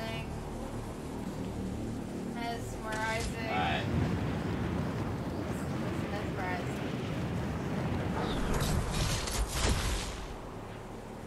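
Wind rushes past during a game character's skydive.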